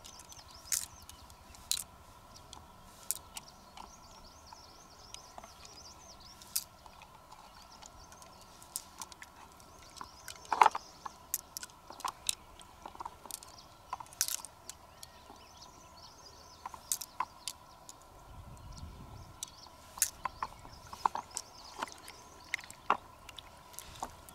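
Small plastic beads click and clatter against a shell.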